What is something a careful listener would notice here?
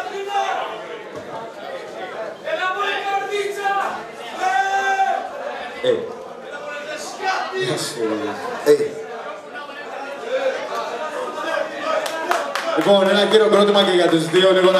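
A crowd cheers and shouts in a loud echoing hall.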